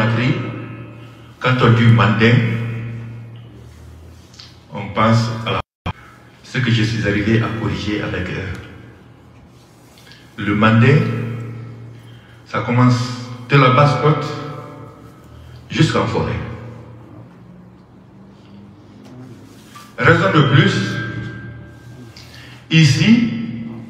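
A man speaks with animation into a microphone, his voice booming and echoing in a room.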